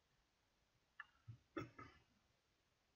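A small screwdriver clicks and scrapes against metal parts.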